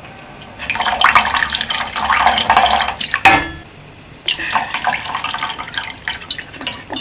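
Liquid trickles and splashes into a pot of broth.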